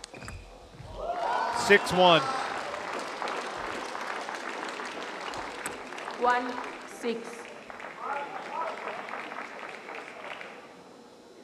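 A crowd cheers and applauds in a large echoing hall.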